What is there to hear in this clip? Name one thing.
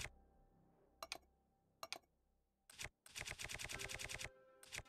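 Game menu ticks click as items scroll by quickly.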